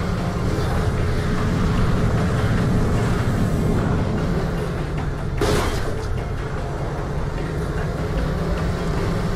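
Tyres rumble over rough ground.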